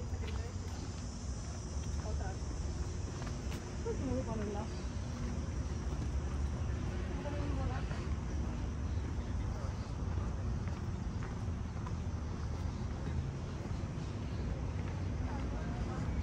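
Footsteps crunch and tap on a stone path.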